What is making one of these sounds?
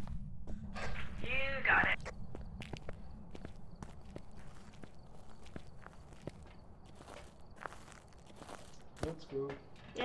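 Footsteps tread steadily on pavement.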